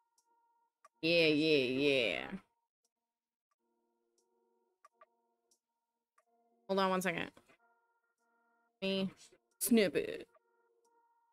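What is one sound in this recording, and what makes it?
A woman speaks with animation close to a microphone, in short bursts.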